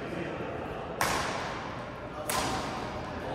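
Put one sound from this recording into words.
Rackets smack a shuttlecock in a large echoing hall.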